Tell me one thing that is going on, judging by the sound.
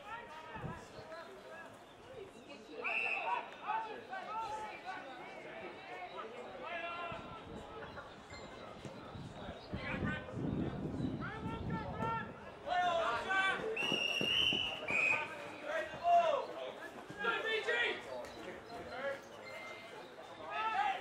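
Young women playing football call out and shout to each other across an open field outdoors.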